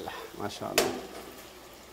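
A fork scrapes and clinks against a metal pot.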